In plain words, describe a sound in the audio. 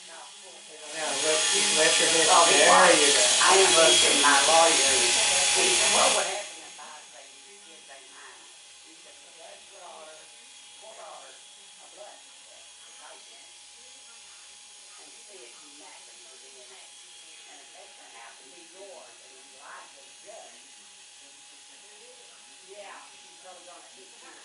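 Electric hair clippers buzz close by.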